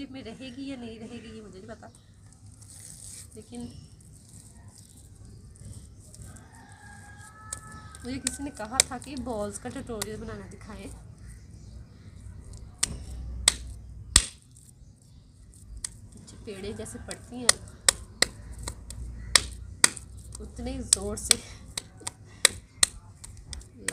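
Wet mud squelches and pats as hands squeeze it into a ball.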